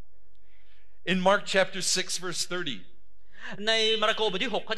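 A man speaks with animation over a loudspeaker in a large echoing hall.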